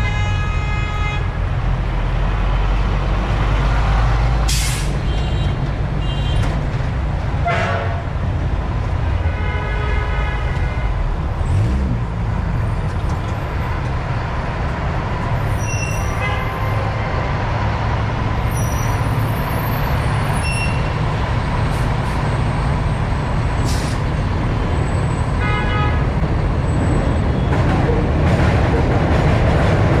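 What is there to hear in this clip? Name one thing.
City traffic hums and roars all around.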